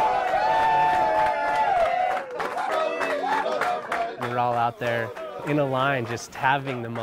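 A group of men sing together loudly.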